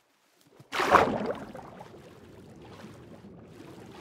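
A muffled underwater rumble drones on.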